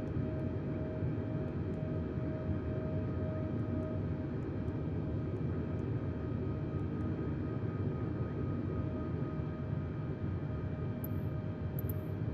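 A jet engine drones steadily from inside a cockpit.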